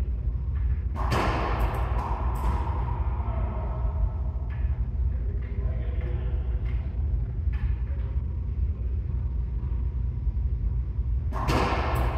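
A racquetball smacks loudly off the walls, echoing.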